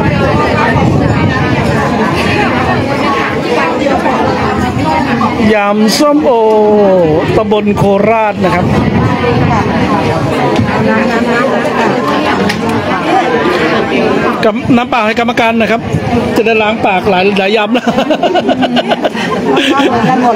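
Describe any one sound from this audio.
A crowd of people chatter in the background outdoors.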